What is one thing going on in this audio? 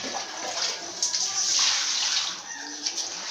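Water splashes from a tap into a sink.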